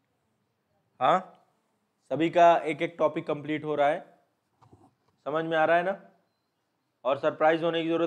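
A man lectures into a close microphone, in short bursts with pauses.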